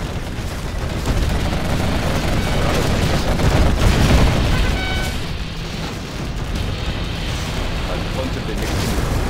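Explosions boom and rumble in a battle.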